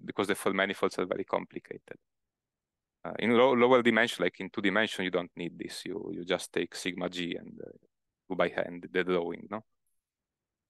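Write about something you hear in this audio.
A young man speaks calmly through a microphone, pausing often.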